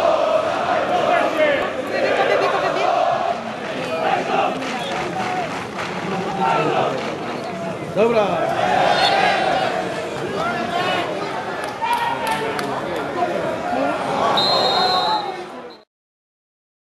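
A large stadium crowd chants and cheers loudly.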